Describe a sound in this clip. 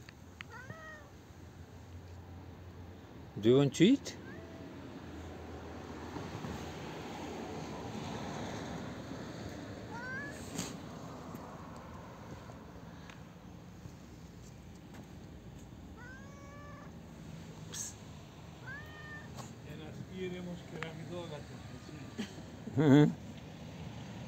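A cat meows repeatedly, close by.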